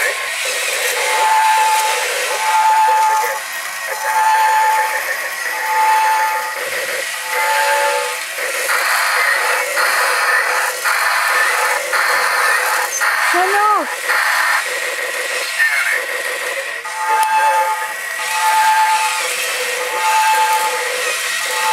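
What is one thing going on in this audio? A toy robot gives a repeated electronic beep.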